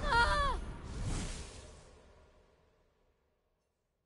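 A magical portal whooshes and crackles with energy, then fades away.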